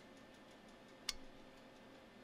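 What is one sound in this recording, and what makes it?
A plastic tool is set down on a hard bench with a knock.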